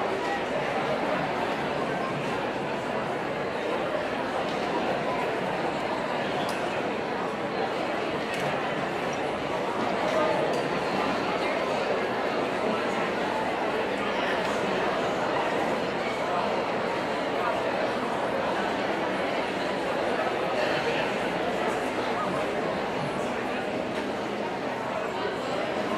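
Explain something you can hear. An audience murmurs and chatters in a large echoing hall.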